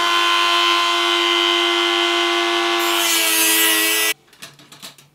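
A small rotary tool whines loudly as it grinds.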